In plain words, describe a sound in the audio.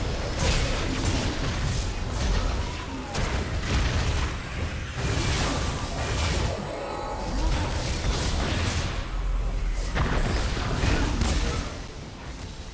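Video game spell effects whoosh and blast in quick bursts.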